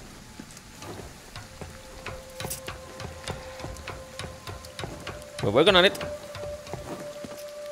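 Footsteps clank on metal ladder rungs in a steady rhythm.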